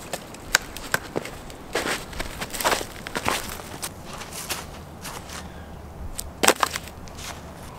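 Footsteps crunch through snow and dry leaves.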